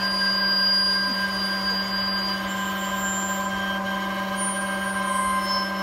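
A motor hums steadily nearby.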